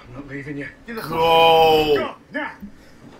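A man cries out loudly in surprise.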